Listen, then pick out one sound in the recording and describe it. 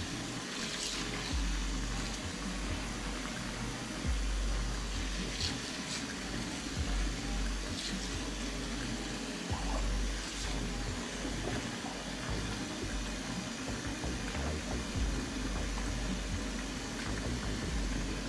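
Dishes clink and knock together in a sink.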